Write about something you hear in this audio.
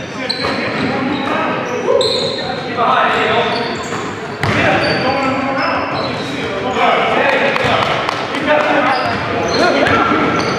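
Men shout and call out to each other nearby.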